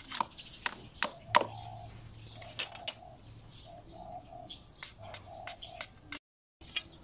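A machete chops into a tree trunk with sharp, repeated knocks.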